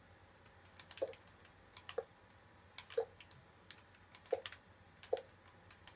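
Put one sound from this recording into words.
A block thuds softly as it is placed, several times.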